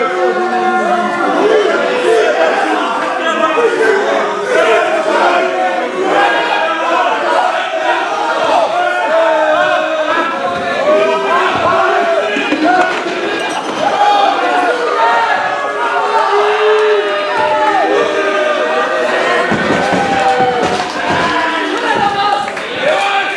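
A crowd cheers and chants loudly in an echoing hall.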